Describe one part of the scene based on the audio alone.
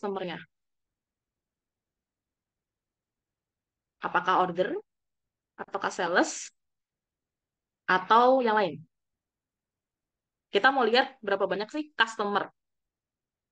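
A young woman speaks calmly in short phrases, heard through a microphone on an online call.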